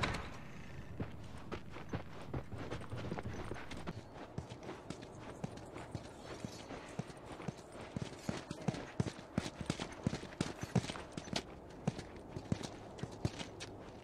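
Footsteps crunch steadily on a hard, gritty ground.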